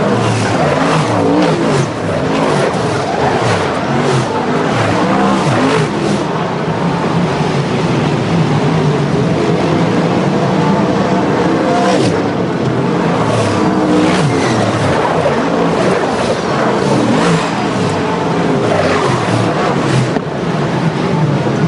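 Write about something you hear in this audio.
Tyres spray dirt as race cars slide through a bend.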